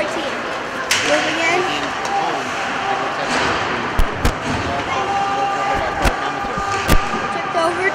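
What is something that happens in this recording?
Hockey sticks clack sharply against a puck.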